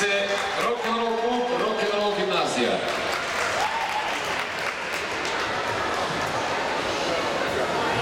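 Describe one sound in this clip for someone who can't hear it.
A crowd of children and adults chatters and cheers in a large echoing hall.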